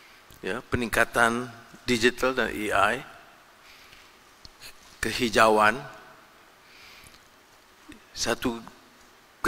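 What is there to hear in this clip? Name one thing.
An older man speaks emphatically into a microphone over loudspeakers, pausing between phrases.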